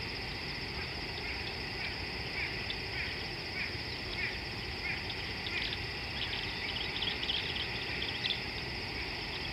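Small birds chirp in short repeated calls.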